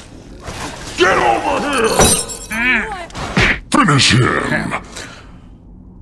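A man shouts loudly into a microphone.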